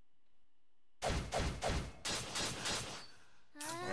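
Weapons strike with sharp, rapid hits.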